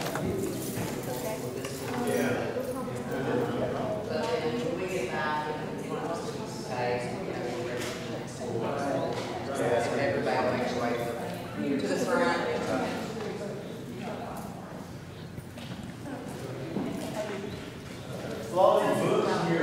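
Several adults talk and chatter in a large echoing hall.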